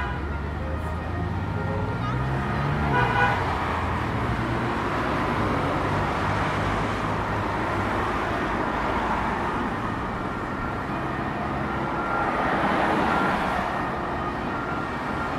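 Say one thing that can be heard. Cars drive past nearby.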